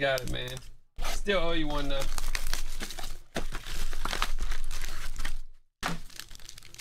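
Cardboard tears as a box is ripped open.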